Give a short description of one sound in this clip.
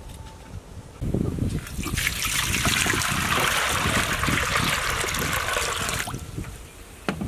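Water pours and splashes into a metal pan.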